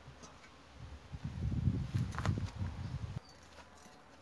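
Footsteps crunch on dry grass and soil.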